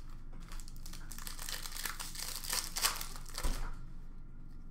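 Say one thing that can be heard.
Plastic wrapping crinkles and rustles in someone's hands.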